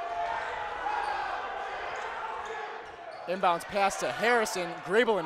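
A large crowd in an echoing gym murmurs and cheers.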